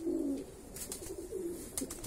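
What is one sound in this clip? A pigeon flaps its wings.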